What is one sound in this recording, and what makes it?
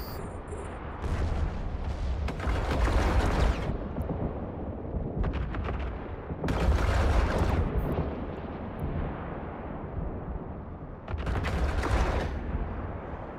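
A spaceship's weapons in a video game fire in loud bursts.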